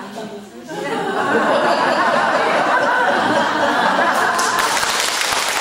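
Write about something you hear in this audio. A crowd laughs loudly.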